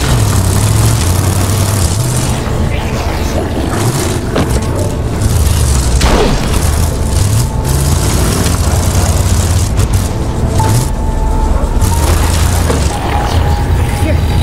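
Tyres crunch over gravel and rocks.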